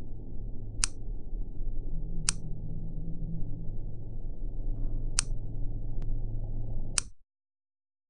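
Sharp game clicks sound a few times, evenly spaced.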